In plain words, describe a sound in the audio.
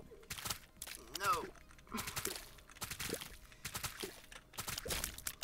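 Video game sound effects pop and splat quickly as shots are fired.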